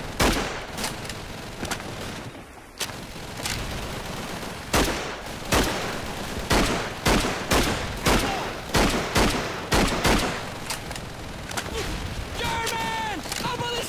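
A rifle bolt clacks as it is worked.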